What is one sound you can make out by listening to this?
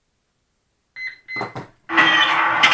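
A model plane's electronics beep a few short tones.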